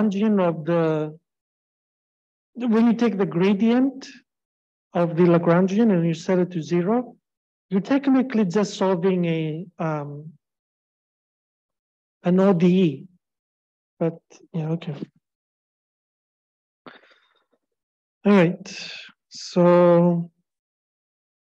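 A man speaks calmly into a microphone, heard through an online call.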